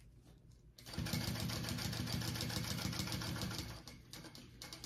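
A sewing machine whirs rapidly as it stitches.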